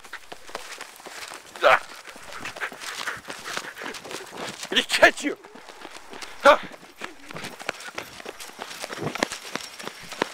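Footsteps run on pavement outdoors.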